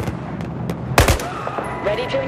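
A gunshot cracks loudly nearby.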